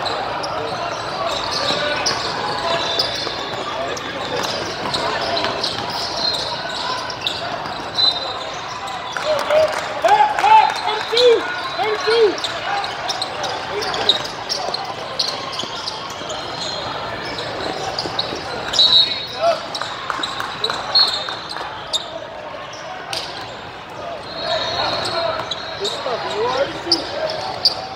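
A crowd of players and spectators chatters and shouts in a large echoing hall.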